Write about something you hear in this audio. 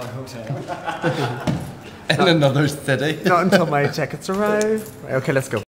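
A second young man talks and laughs close by.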